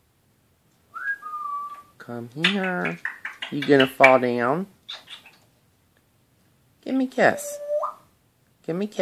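A parrot whistles.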